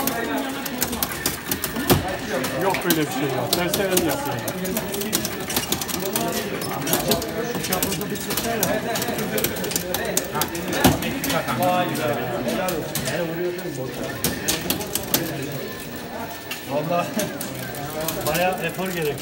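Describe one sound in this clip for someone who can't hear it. Punches and shouts of a fighting game sound from arcade speakers.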